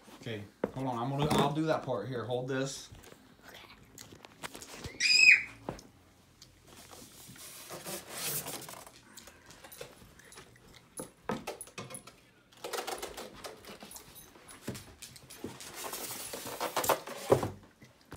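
Cardboard and plastic pieces rustle and knock as they are handled.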